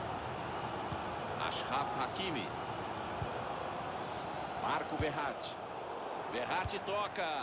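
A football is kicked with short, dull thuds.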